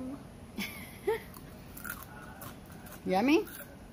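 A young boy munches on a crunchy snack.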